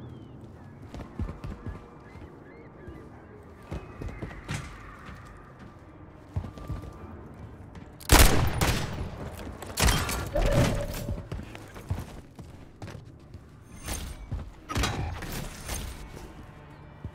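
Gunshots fire in quick, loud bursts.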